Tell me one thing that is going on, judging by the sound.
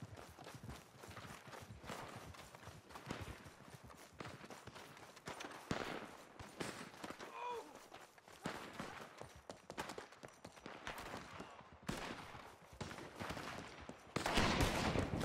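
Footsteps run over dirt and boards.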